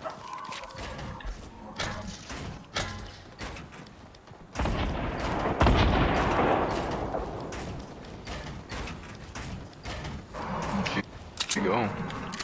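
Wooden walls and ramps clack into place in quick succession.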